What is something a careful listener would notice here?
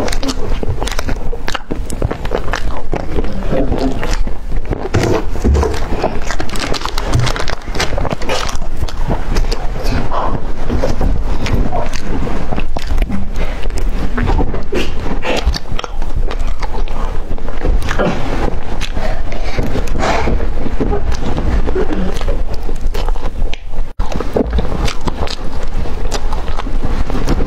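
A young woman chews crunchy food loudly and close to a microphone.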